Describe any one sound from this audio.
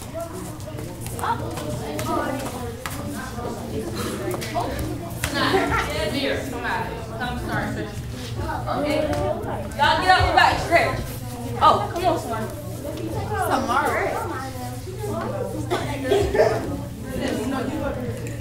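Girls talk and call out to each other in a large echoing room.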